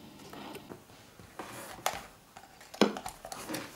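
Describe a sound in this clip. A cable and plug rattle and knock as they are handled.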